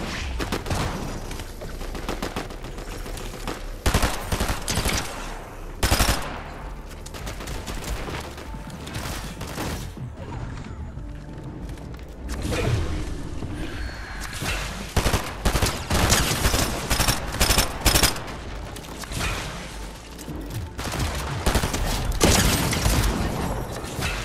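Gunshots crack in quick bursts in a video game.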